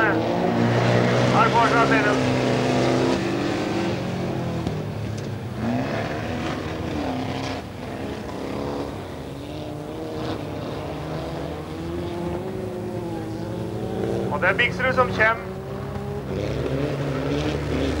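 Small car engines rev and roar as cars race.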